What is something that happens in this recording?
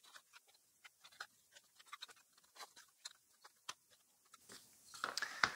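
Small wooden game pieces click softly against each other.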